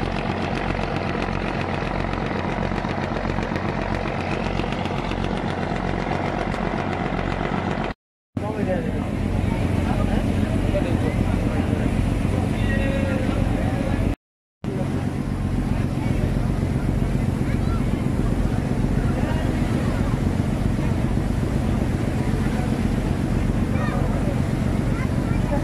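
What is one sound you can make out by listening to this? A boat engine rumbles steadily throughout.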